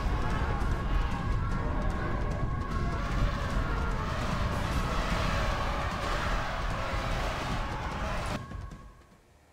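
The din of a large battle roars, with many clashing weapons.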